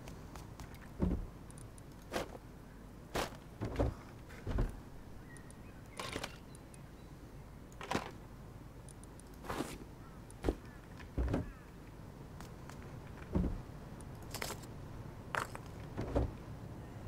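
A wooden crate lid thuds open and shut again and again.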